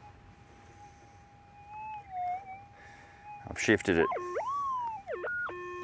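A metal detector hums with a steady tone that wavers, then swoops up and down in pitch with sharp beeps.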